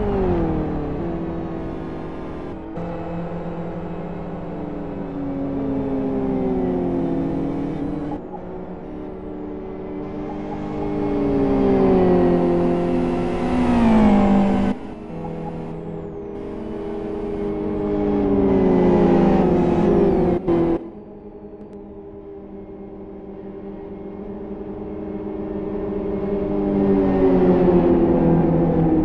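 Racing car engines drone and whine as cars pass one after another, rising and falling in pitch.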